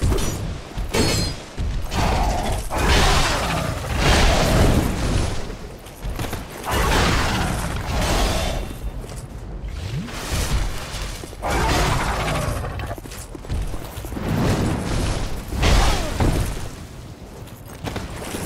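A huge beast roars and screeches.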